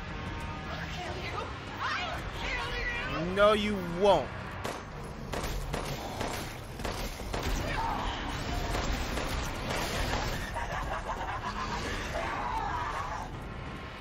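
Gunshots crack.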